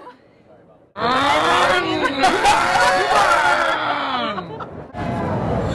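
A group of adults laugh loudly.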